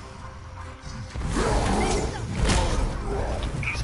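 Heavy blows and crashes of a fight with a large creature ring out.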